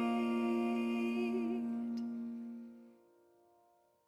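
A woman sings a long, held note through a microphone.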